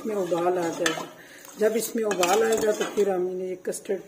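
A spoon stirs and scrapes in a pan of liquid.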